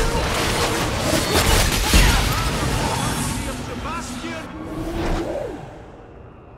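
Weapons clash and strike in a noisy fight.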